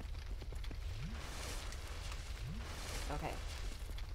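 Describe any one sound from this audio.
A shimmering magical chime rings out.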